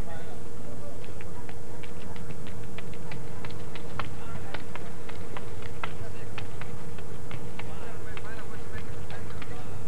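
A group of young women claps outdoors in the distance.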